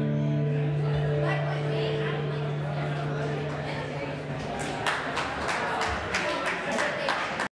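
An electric guitar plays long, ringing notes through an amplifier.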